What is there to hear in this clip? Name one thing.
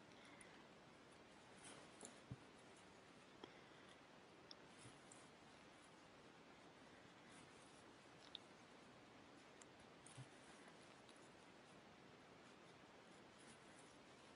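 A crochet hook and yarn rustle softly and click now and then.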